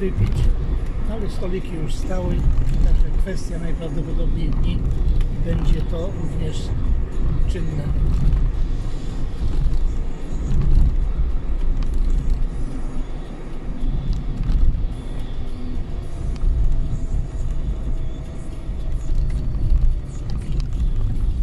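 A vehicle engine rumbles steadily from inside while driving.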